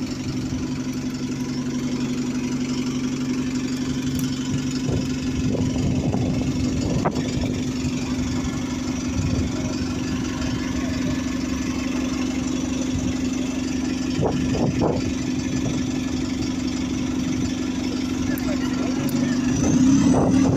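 A bus engine idles close by with a steady low hum.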